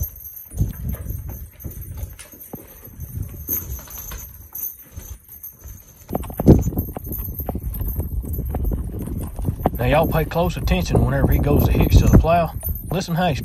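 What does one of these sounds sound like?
Hooves thud and clop on dirt as mules walk.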